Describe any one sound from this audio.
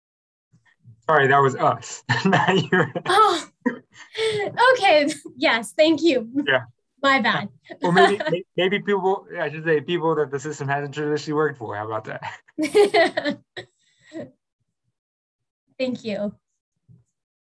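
Young women talk and laugh with animation over an online call.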